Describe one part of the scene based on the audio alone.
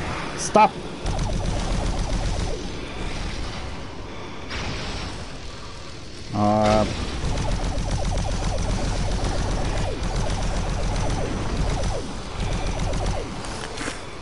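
A plasma gun fires rapid buzzing shots.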